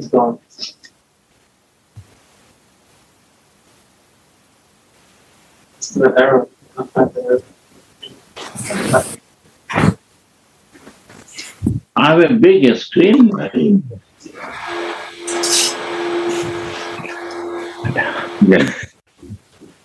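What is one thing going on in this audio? An elderly man speaks calmly over an online call, in short bursts with pauses.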